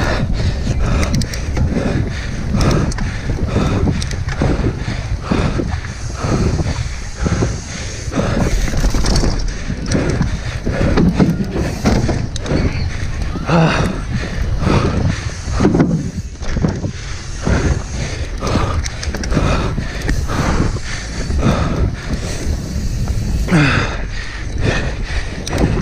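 Bike tyres crunch and rattle over a dirt trail.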